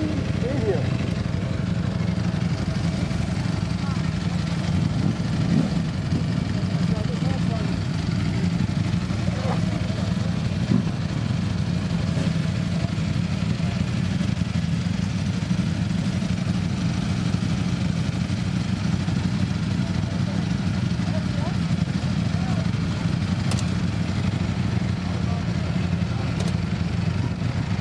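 Motorcycle engines idle with a deep, steady rumble close by.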